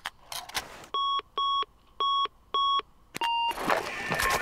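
Electronic beeps sound in a quick series of short, even tones.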